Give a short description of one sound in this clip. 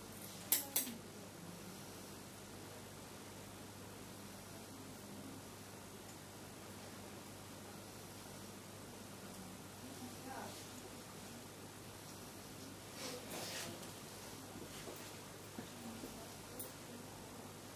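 Metal instruments clink softly against each other.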